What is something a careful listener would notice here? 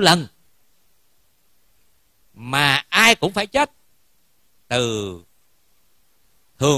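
A man chants in long, sustained tones close by, in short phrases with pauses between them.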